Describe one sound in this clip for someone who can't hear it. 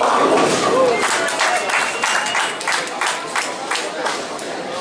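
Bowling pins crash and clatter in an echoing hall.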